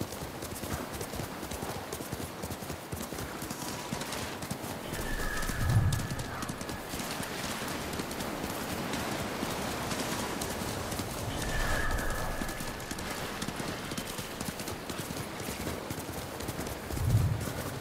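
Horse hooves gallop steadily through grass.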